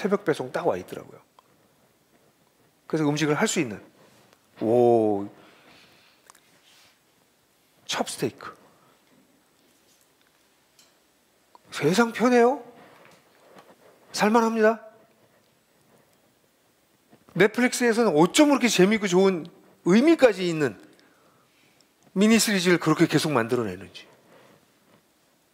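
An older man speaks calmly into a microphone, in short phrases with pauses.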